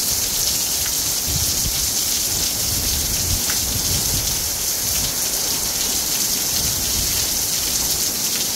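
Wind gusts roughly outdoors.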